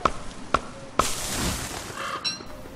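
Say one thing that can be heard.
A tree falls with a rushing crash.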